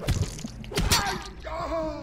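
A metal wrench strikes a body with a heavy thud.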